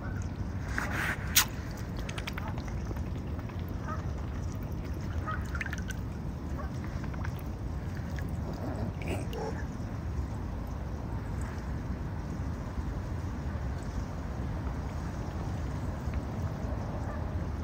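A swan dabbles its bill in shallow water with soft splashes and drips.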